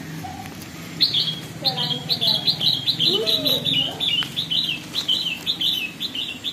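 Baby birds cheep rapidly and shrilly, close by.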